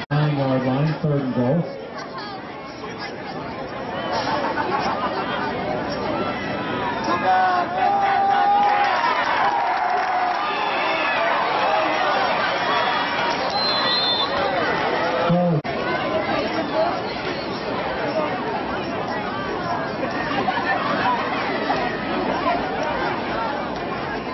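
A crowd cheers and shouts across a large open outdoor field.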